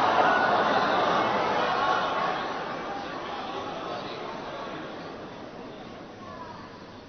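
A large crowd murmurs and calls out in approval, fading away.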